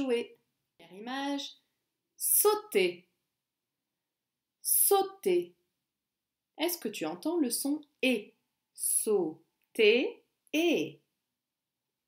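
A young woman speaks with animation close to the microphone, in short bursts.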